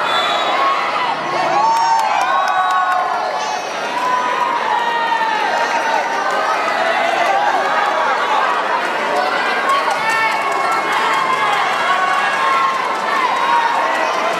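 A large crowd of spectators cheers and chatters in a big echoing hall.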